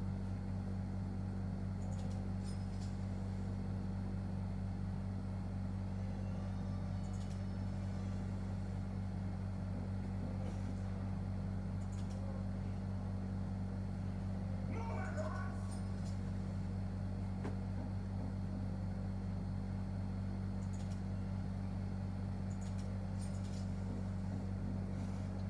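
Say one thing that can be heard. A video game plays music and sound effects through a television speaker.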